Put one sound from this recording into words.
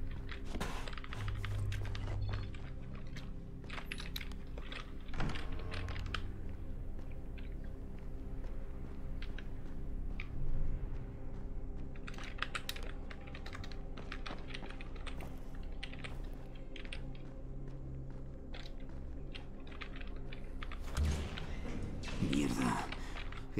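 Footsteps tread on a hard, gritty floor.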